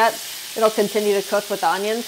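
A spatula scrapes across a pan.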